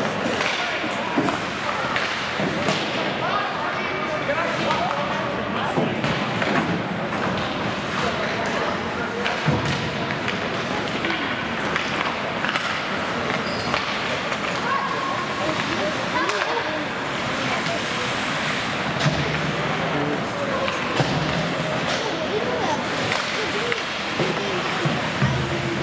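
Ice skates scrape and glide across the ice in a large echoing rink.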